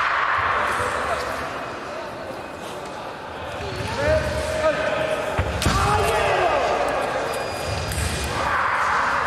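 Voices chatter and echo in a large hall.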